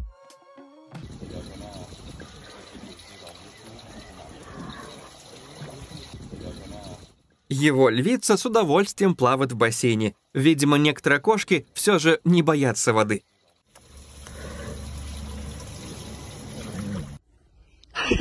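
Water splashes gently in a pool.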